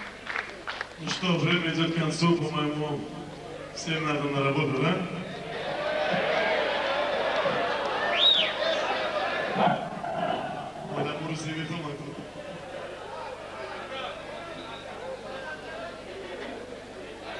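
A band plays music.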